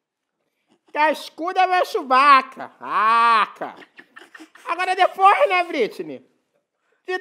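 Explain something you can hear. A man speaks and laughs.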